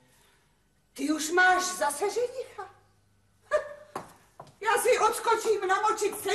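A woman speaks loudly and with animation nearby.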